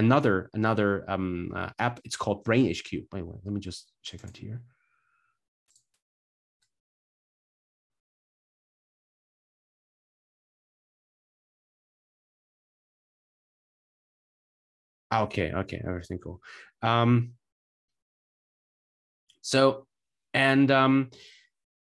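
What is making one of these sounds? A man speaks calmly through a microphone, heard as in an online call, pausing between phrases.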